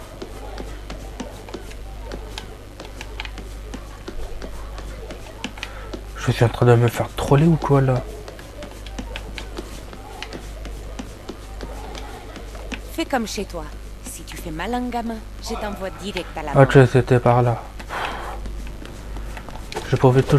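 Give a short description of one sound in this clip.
Feet run quickly across a hard floor.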